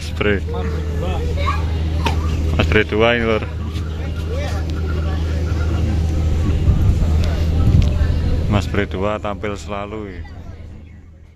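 Men talk calmly nearby outdoors.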